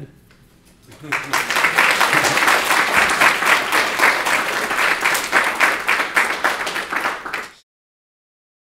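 An elderly man claps his hands.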